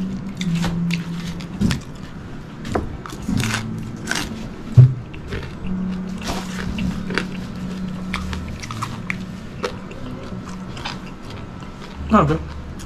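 A man chews crunchy food loudly.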